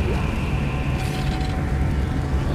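A menu opens with a short electronic whoosh.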